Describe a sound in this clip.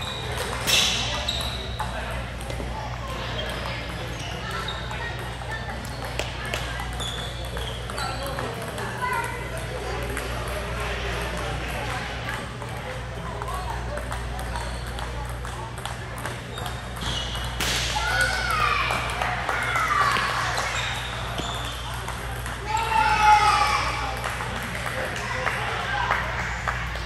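Ping-pong balls click off paddles and tables in quick rallies, echoing in a large hall.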